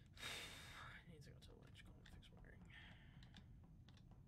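A young man speaks quietly and close to a microphone.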